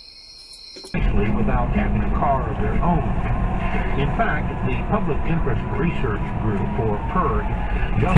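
Tyres roar on a highway, heard from inside the cab.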